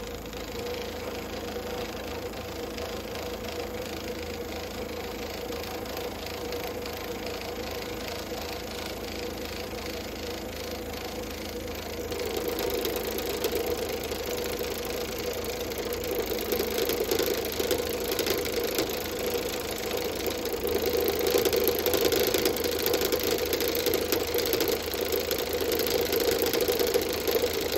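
A cutting tool scrapes against spinning wood, growing louder.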